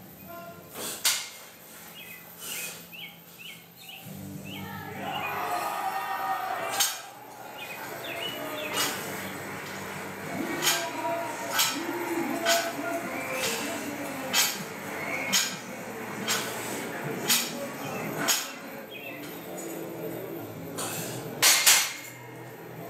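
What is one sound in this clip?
Weight plates clank on a barbell.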